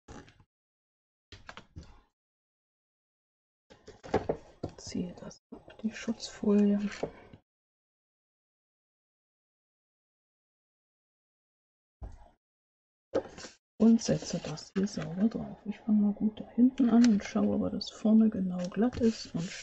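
Card paper rustles and slides under hands.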